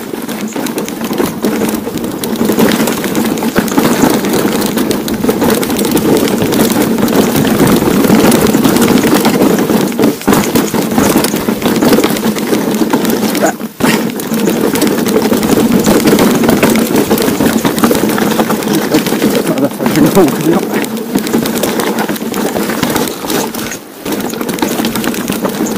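Bicycle tyres rattle and crunch over a rough stony track.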